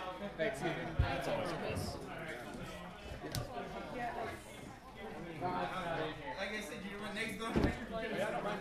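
Cards tap down onto a table.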